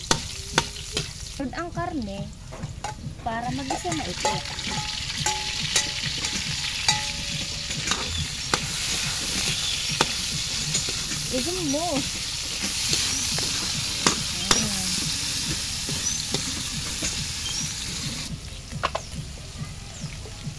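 A metal spatula scrapes and clanks against a wok.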